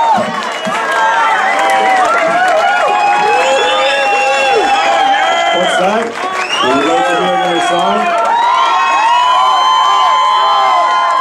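A large crowd of young men and women sings loudly together.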